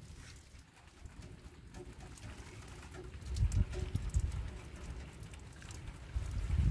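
Metal parts of a stove clink and rattle as they are handled.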